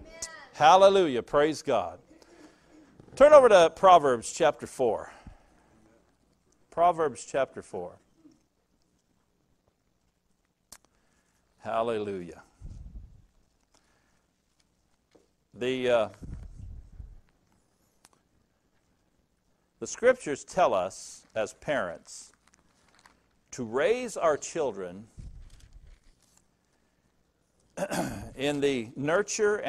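An older man speaks calmly through a microphone, with pauses between phrases.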